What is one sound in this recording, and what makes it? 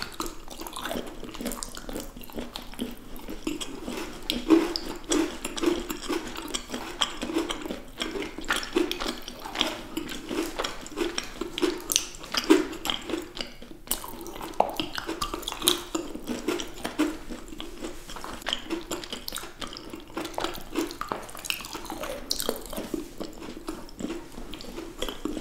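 A woman chews crunchy chocolate snacks close to a microphone.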